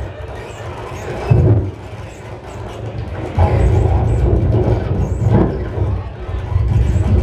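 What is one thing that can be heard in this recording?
Electronic music with a heavy bass beat plays loudly in an echoing room.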